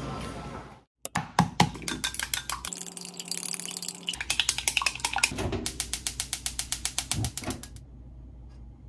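Chopsticks beat eggs briskly in a glass bowl.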